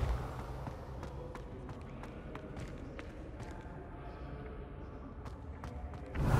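Footsteps tap on a stone floor in a large echoing hall.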